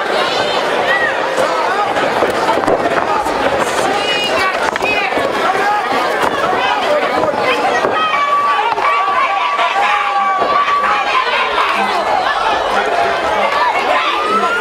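A crowd shouts and cheers in an indoor hall.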